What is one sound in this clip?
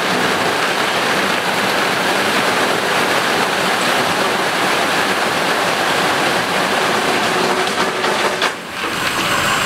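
Rocks tumble and clatter out of a dump truck onto pavement.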